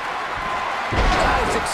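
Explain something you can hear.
A body slams down hard onto a wrestling mat with a heavy thud.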